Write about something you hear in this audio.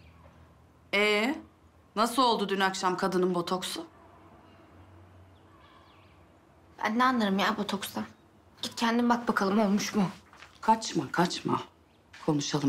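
A woman speaks firmly close by.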